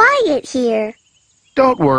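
A young boy speaks quietly.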